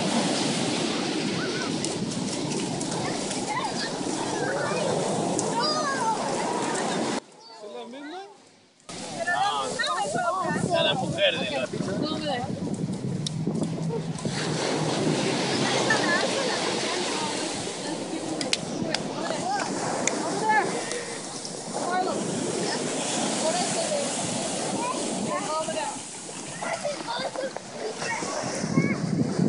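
Waves break and wash onto the shore nearby.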